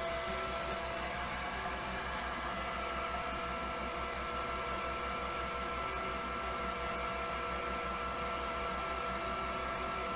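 A hair dryer blows with a steady whirring hum.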